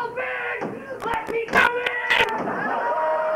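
A man hammers on wooden boards with loud knocks.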